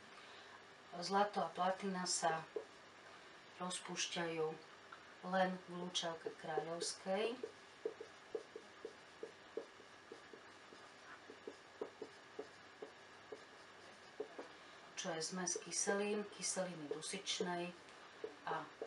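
A middle-aged woman speaks calmly, explaining, close by.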